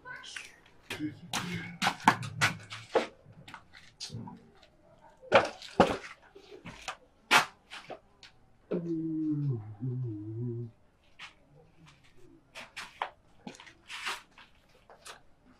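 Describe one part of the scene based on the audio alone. A man knocks and shuffles about nearby.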